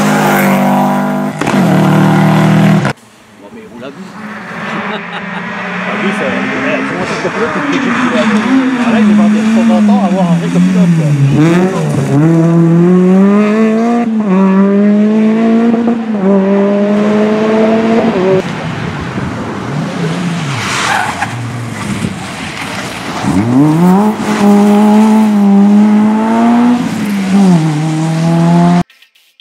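A rally car engine roars and revs hard, rising and falling as it shifts gears.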